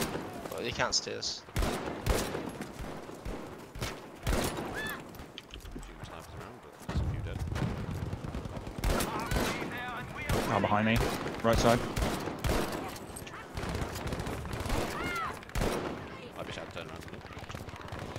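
Gunfire cracks in sharp bursts.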